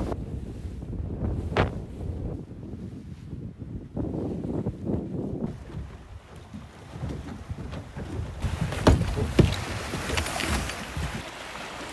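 Small waves lap and splash against rocks.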